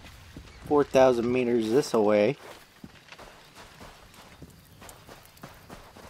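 Footsteps run over sandy ground.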